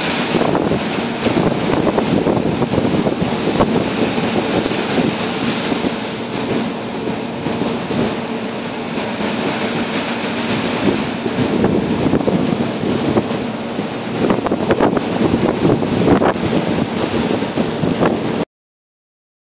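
A ship's engine hums steadily.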